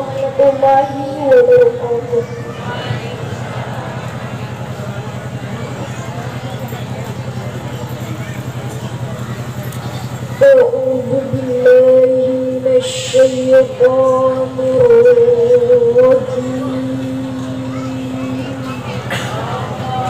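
A man chants in long, drawn-out notes over a loudspeaker outdoors.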